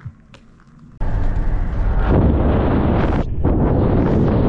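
Wind and road noise roar loudly inside a fast-moving car.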